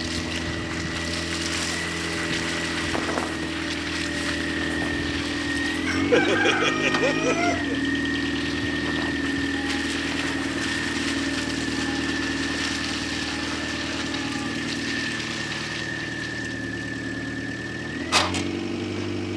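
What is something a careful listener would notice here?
A car drives slowly past nearby.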